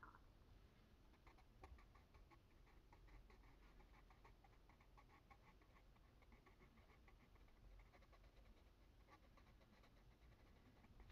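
A coloured pencil scratches softly and quickly on paper.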